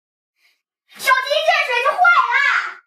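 A young girl speaks with animation close by.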